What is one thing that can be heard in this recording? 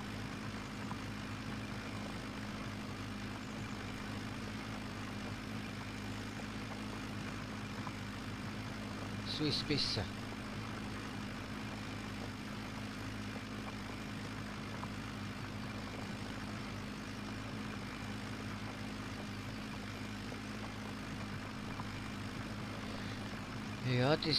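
A tractor engine hums steadily at a low pitch.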